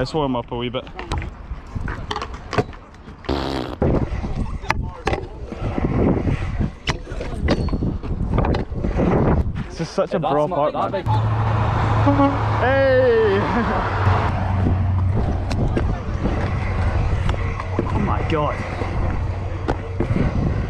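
Scooter wheels roll and rumble over concrete.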